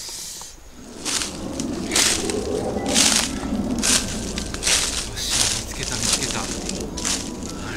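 Footsteps crunch through dry leaves close by.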